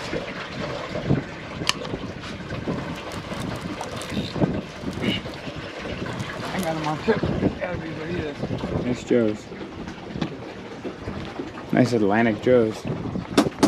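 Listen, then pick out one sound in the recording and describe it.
A fishing reel clicks as line is reeled in.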